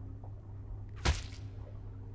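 A knife stabs into a body with a sharp, wet slash.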